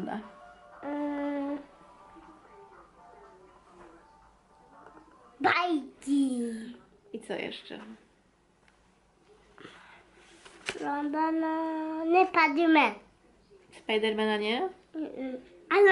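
A small child speaks and babbles in a high voice.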